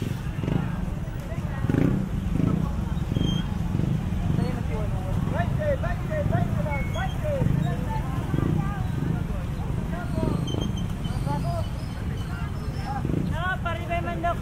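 Motorcycle engines idle and rumble past.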